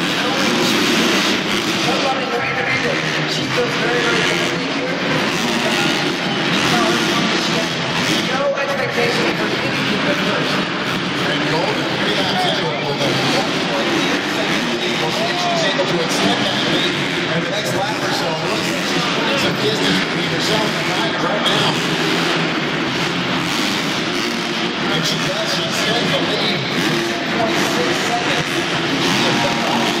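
Nearby spectators talk loudly.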